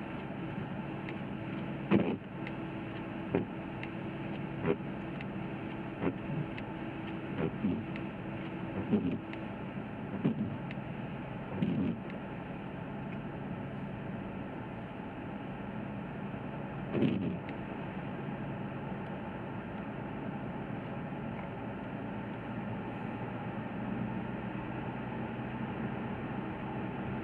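A car engine hums steadily with tyres rolling on a road.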